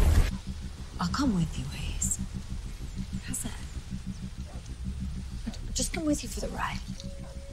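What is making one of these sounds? A young woman speaks softly up close.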